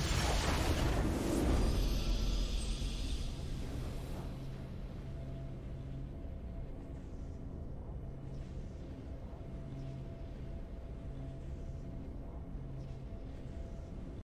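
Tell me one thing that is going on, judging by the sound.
Triumphant music plays softly and steadily.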